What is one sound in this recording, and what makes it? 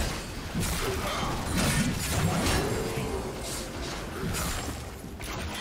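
Magic blasts whoosh and crash in quick bursts during a fight.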